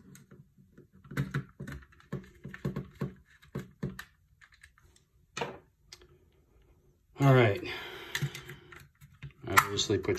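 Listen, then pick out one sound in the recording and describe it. Plastic parts click and snap as a game controller is pried apart.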